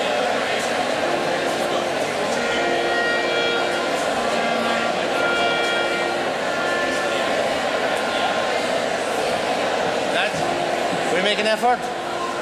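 Musical instruments play long, held notes.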